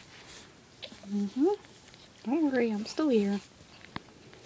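A cat meows loudly several times, close by.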